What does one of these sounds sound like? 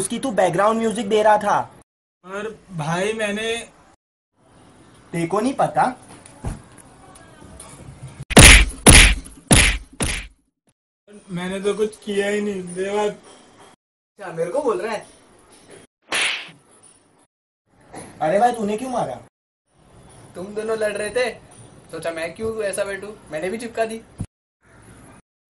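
Young men speak close by with animation, in short bursts.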